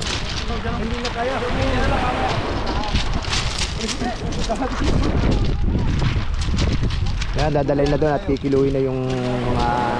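Bare feet crunch on pebbles.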